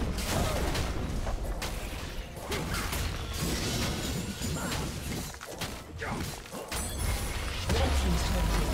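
Game battle effects of spells and weapons crash and burst rapidly.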